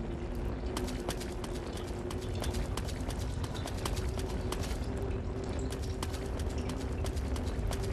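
Footsteps crunch on dry ground.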